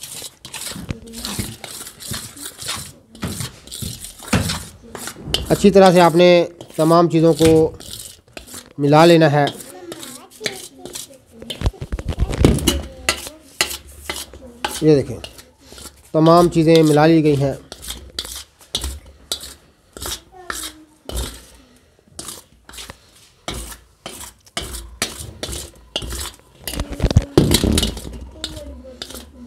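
A spoon scrapes and stirs powder in a metal pan.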